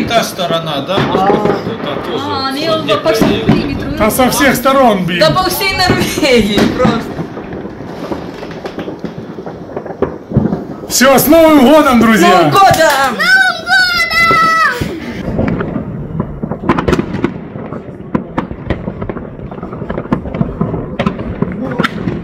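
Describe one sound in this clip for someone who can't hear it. Fireworks pop and crackle in the distance.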